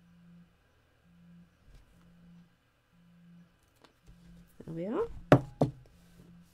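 A stamp block is pressed and knocks against a hard mat.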